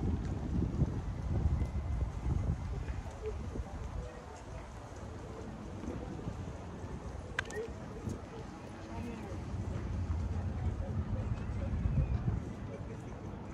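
Wind gusts outdoors, rumbling in bursts.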